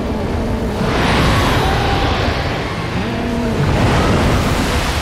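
A huge creature roars deeply.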